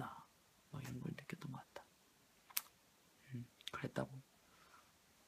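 A young man speaks softly and haltingly, close to a phone microphone.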